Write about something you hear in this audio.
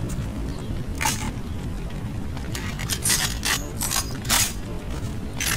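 Sharp metallic clicks ring out.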